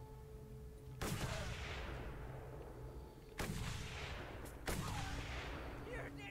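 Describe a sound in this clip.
Loud gunshots crack and echo.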